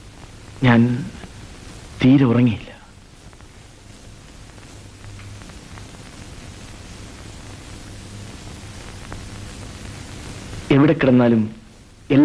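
A man speaks in short, tense bursts close by.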